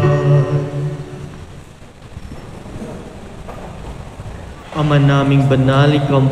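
A man chants in a steady, sung voice through a microphone.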